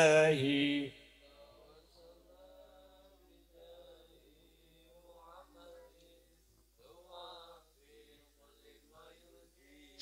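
A seated crowd of men and women murmurs quietly.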